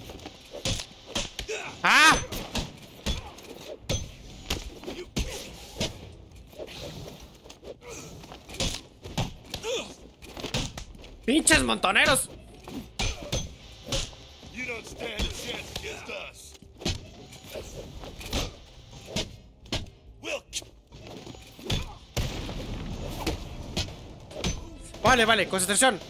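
Punches and kicks land with sharp thuds in quick succession.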